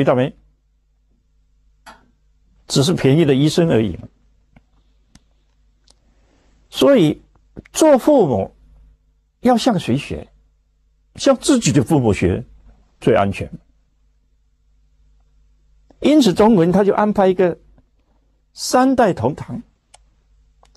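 An elderly man speaks calmly and with emphasis into a microphone, in short phrases with pauses.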